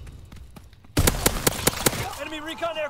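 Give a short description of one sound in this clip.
A shotgun fires several loud, sharp blasts in quick succession.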